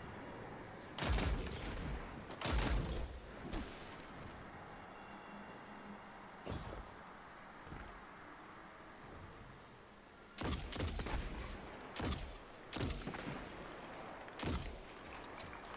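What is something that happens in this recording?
A gun fires in loud bursts of shots.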